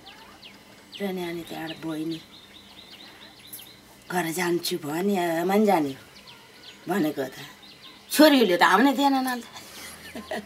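An elderly woman speaks calmly and softly, close by.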